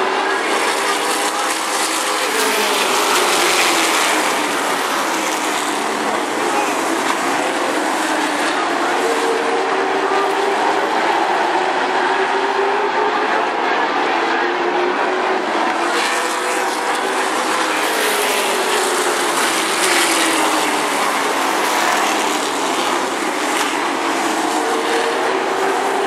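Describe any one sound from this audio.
Race car engines roar loudly as the cars speed around the track.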